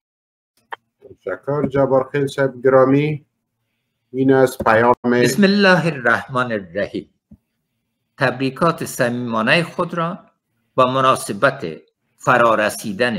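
A man speaks calmly, heard through an online call.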